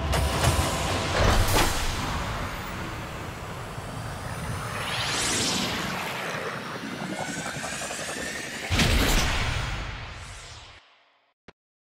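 Electronic game music swells with whooshing effects, then fades out.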